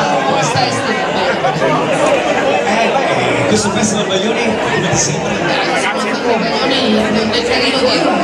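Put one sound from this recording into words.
A woman speaks into a microphone close up.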